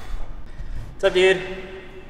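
Metal dumbbells clank down onto a hard floor.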